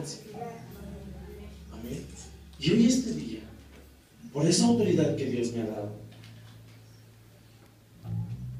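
A man speaks loudly into a microphone through loudspeakers in an echoing room.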